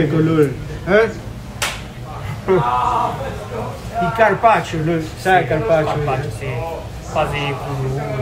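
A knife slices through meat on a wooden board.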